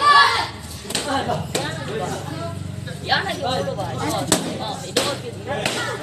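Kicks smack against a hand-held pad.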